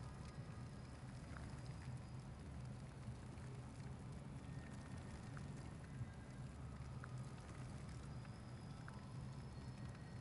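A torch fire crackles softly.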